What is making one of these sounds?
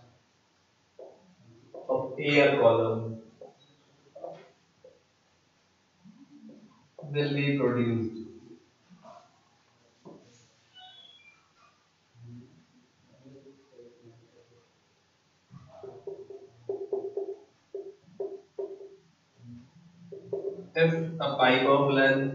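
A man lectures.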